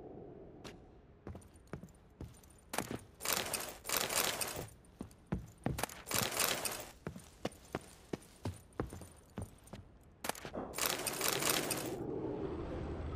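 Footsteps thump on wooden floorboards.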